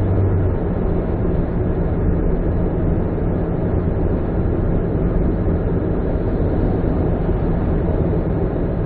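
Tyres roar steadily on a motorway from inside a moving car.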